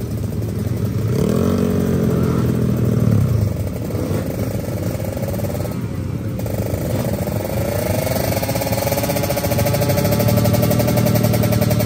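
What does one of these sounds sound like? A scooter engine idles and revs up loudly nearby.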